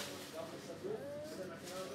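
Scissors snip.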